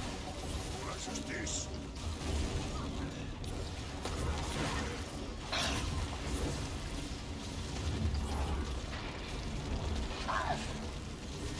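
Game combat effects whoosh, clash and boom throughout.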